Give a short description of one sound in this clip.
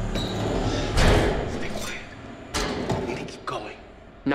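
Metal clanks and rattles.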